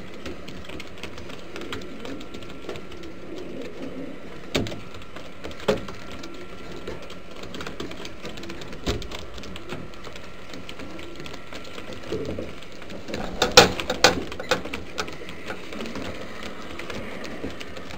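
Pigeons coo softly and steadily close by.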